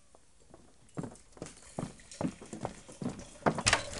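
Hot water pours into a cup.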